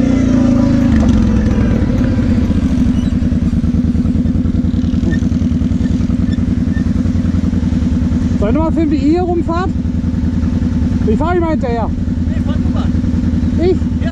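An off-road buggy's engine rumbles and idles loudly close by.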